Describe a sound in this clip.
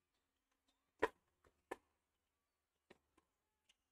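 A tennis ball is struck with a racket and bounces with sharp pops on a hard court.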